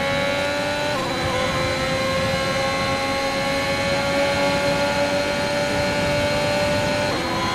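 A racing car engine screams at high revs, dropping briefly at a gear change and then climbing steadily.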